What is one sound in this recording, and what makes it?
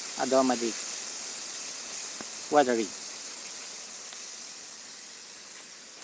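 Water hisses as it sprays from a small leak in a pipe.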